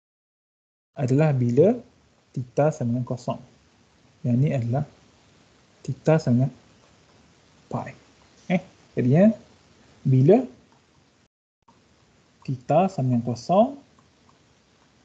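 A man speaks calmly over an online call, explaining in short phrases.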